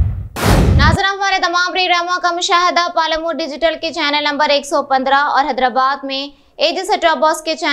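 A young woman reads out calmly into a microphone.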